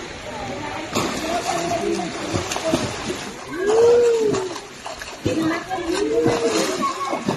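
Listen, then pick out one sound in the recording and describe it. Water splashes loudly as a swimmer kicks.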